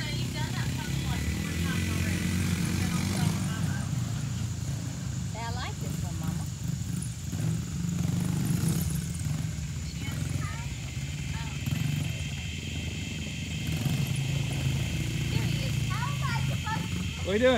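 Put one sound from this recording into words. Small dirt bike engines buzz and rev in the distance.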